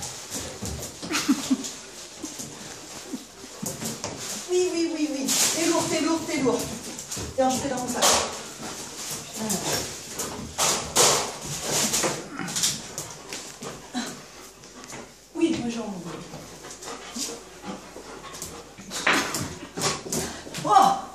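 A young woman talks and laughs playfully nearby.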